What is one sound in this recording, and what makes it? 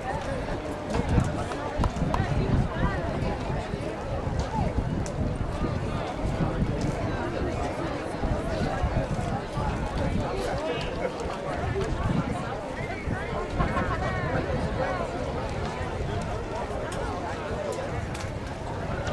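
A crowd of young people chatters nearby outdoors.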